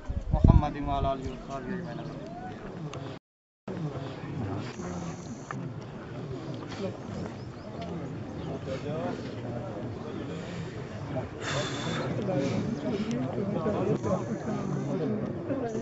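Several men talk at once in low, murmuring voices outdoors.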